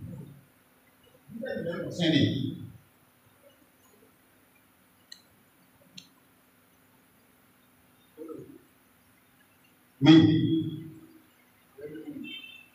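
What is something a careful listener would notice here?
An elderly man speaks into a microphone in short bursts with pauses.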